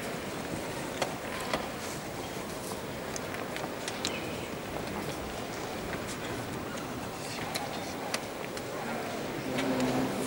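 A chess clock is slapped with quick taps.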